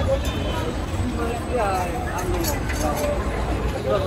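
Water splashes and sizzles on a hot pan.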